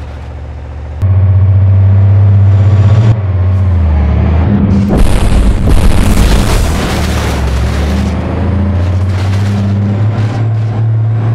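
A truck engine rumbles loudly.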